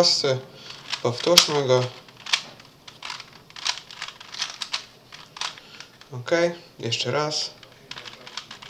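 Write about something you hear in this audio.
A plastic puzzle cube clicks and clatters as its layers are turned quickly.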